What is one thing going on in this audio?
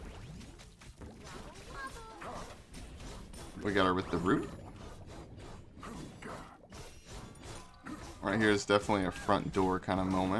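Blades clash and magic blasts crackle in a fight.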